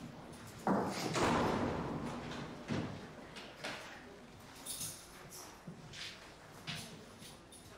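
Footsteps walk across a hard floor indoors.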